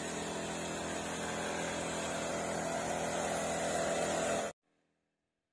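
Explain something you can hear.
A motorised sprayer engine hums steadily.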